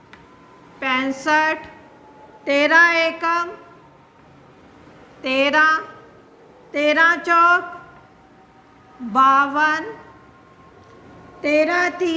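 A woman recites clearly in short bursts, close by.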